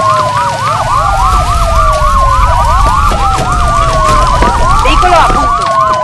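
A fire roars with a low rumble.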